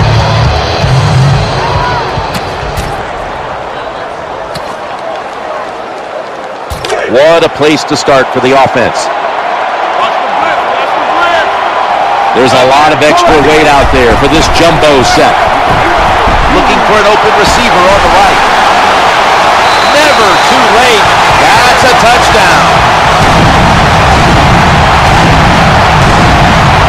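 A large stadium crowd roars and cheers, swelling louder partway through.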